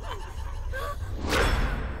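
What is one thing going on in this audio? A young woman breathes heavily in fear.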